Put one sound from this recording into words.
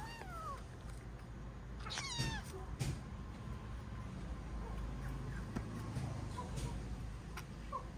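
A baby monkey sucks and gulps milk from a bottle.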